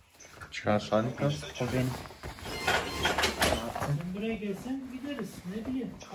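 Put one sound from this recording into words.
Fabric rustles as it is handled.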